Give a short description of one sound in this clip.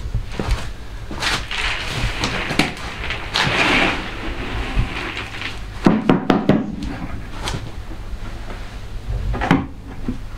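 A man scoops loose grain with a plastic container, with a dry rustling scrape.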